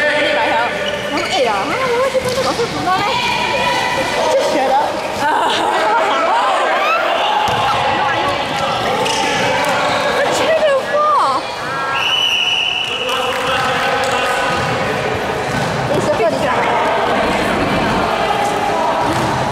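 Young boys shout and call out during a game.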